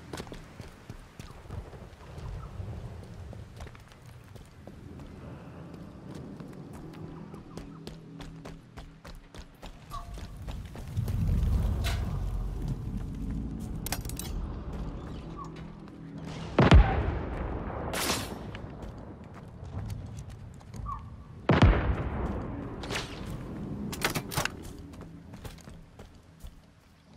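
Footsteps tread through grass and gravel.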